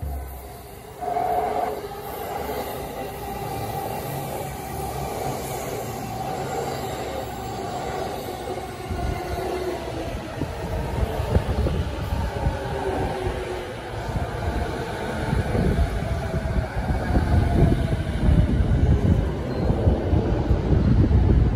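An electric commuter train's motors whine as it moves past.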